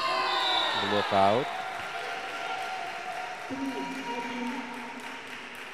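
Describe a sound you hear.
A crowd cheers and chatters in a large echoing hall.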